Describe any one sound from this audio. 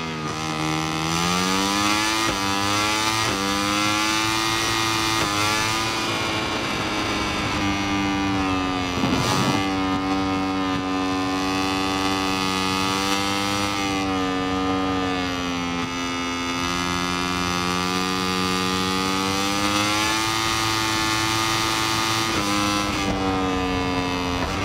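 A motorcycle engine roars at high revs, rising in pitch and dropping sharply with each gear change.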